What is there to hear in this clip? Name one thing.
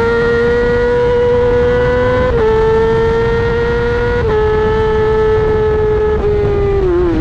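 A motorcycle engine screams at high revs, dropping in pitch at each gear change.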